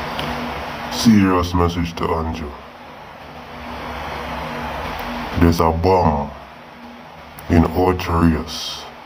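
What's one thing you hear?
A man speaks in short bursts close to the microphone.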